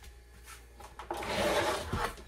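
A plastic mat scrapes across the floor.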